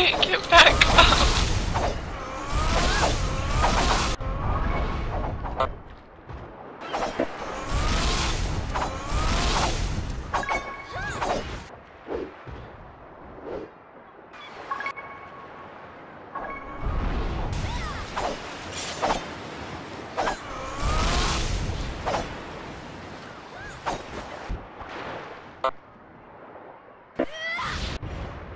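Magic spells burst with bright chiming whooshes.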